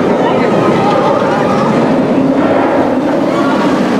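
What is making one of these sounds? A roller coaster train rattles and roars along its track nearby.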